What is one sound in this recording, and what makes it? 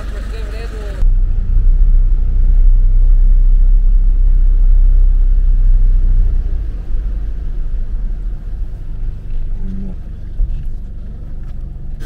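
Water splashes and sloshes against a vehicle.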